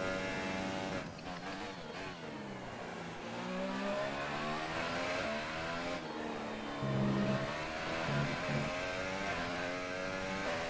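A racing car engine roars and revs up and down as the car shifts gears.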